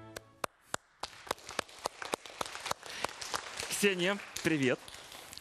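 An audience claps.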